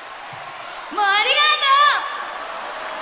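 A young woman calls out loudly into a microphone.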